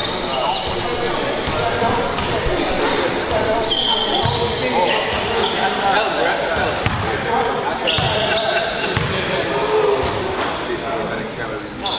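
Men talk and call out loosely across the court.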